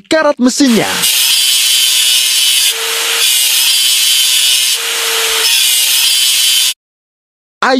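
An angle grinder whines as it grinds metal.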